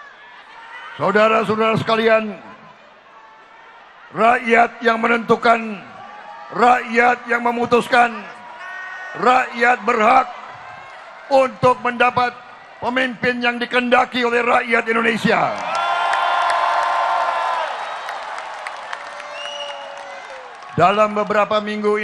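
An older man speaks forcefully through a microphone and loudspeakers, echoing in a large hall.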